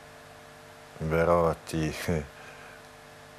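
A middle-aged man speaks briefly and calmly into a close microphone.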